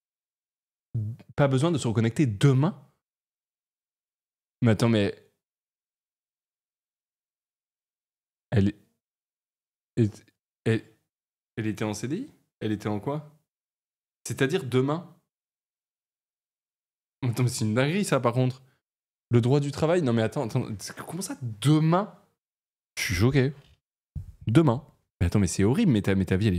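A young man talks with animation in bursts, close to a microphone.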